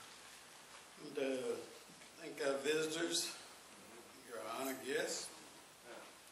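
A man speaks into a microphone through loudspeakers in a large echoing hall.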